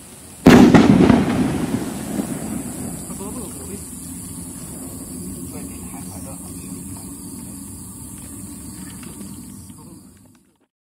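Firework sparks crackle and fizz as they fall.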